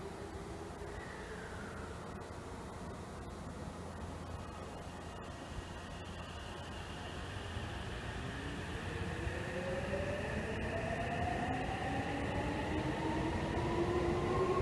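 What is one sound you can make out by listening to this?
Train wheels rumble low on the rails.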